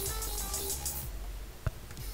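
Upbeat music plays briefly and then cuts off.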